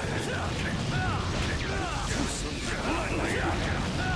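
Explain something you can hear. Crackling energy strikes zap and hiss.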